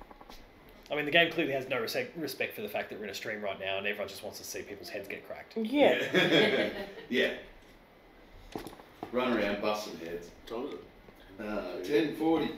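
Young men chat casually with each other close by.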